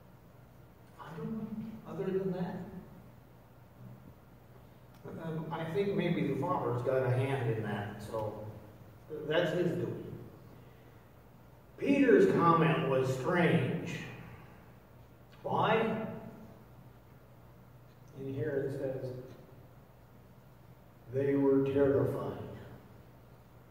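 An older man speaks calmly in pauses through a microphone in a large echoing room.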